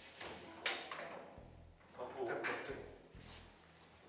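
A lift door swings open.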